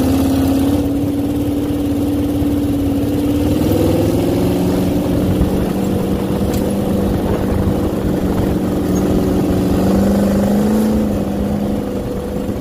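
A dune buggy engine drones steadily close by, its pitch shifting as it speeds up and slows.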